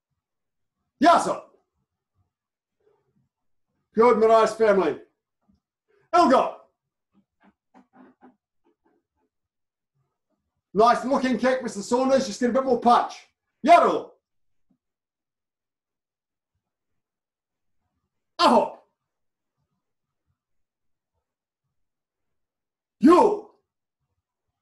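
A man speaks calmly in short bursts, close by.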